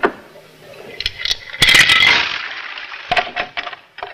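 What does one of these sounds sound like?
Water pours from a jug into a basin and splashes.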